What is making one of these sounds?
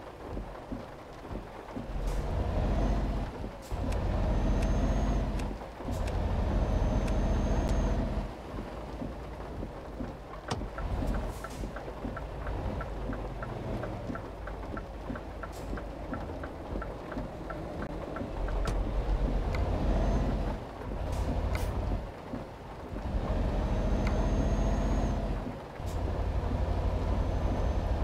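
A truck engine rumbles and roars as it accelerates and shifts gears.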